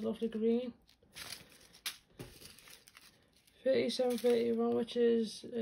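Small plastic beads rattle inside a crinkling plastic bag.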